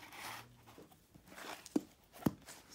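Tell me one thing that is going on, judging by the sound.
A hardcover book slides and rustles as it is turned over.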